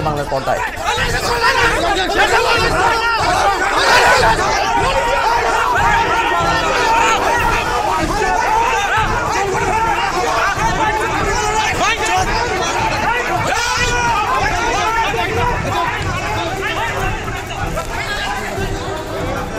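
A crowd of men shouts and clamours outdoors.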